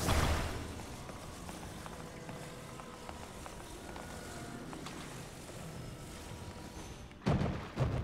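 A low magical hum drones steadily as a heavy log drifts through the air.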